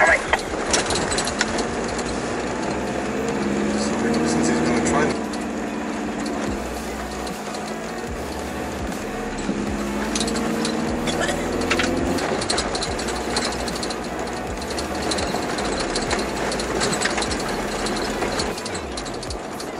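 Tyres crunch and rattle over gravel.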